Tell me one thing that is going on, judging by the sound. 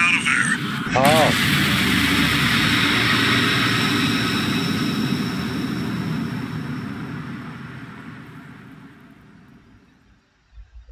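A loud explosion roars and slowly fades away.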